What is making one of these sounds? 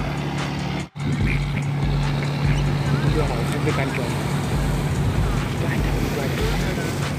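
Waves splash and wash against a boat's hull.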